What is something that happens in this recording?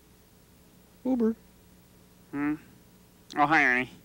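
A man in a high, comic puppet voice calls out a few short words up close.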